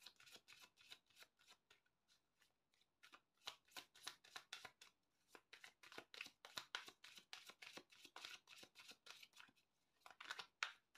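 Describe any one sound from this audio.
Playing cards are shuffled with quick, dry flicking and slapping.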